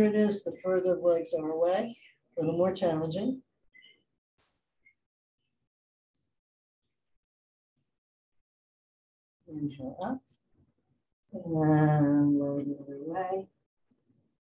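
A woman speaks calmly into a microphone, heard through an online call, in short phrases with pauses.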